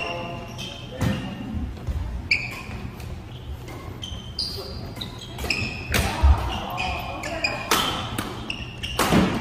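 Shoes squeak sharply on a wooden floor.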